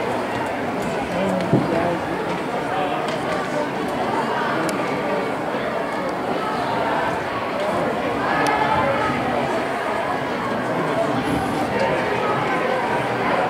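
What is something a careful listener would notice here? Many children murmur and chatter in a large echoing hall.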